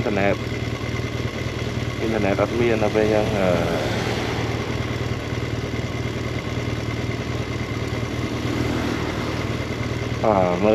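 A motorcycle engine runs with a steady low rumble.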